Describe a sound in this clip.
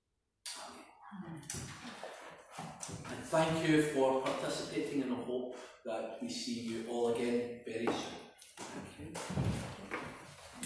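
A middle-aged man speaks steadily, a little distant, in an echoing room.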